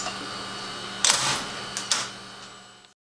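A centrifuge lid thuds shut with a click.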